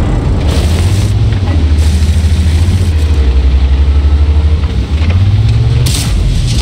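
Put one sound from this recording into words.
Tank tracks clatter over rough ground.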